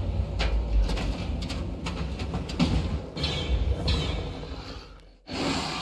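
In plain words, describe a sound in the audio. A creature hisses and screeches loudly.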